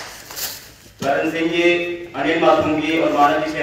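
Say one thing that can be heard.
A man speaks loudly through a loudspeaker.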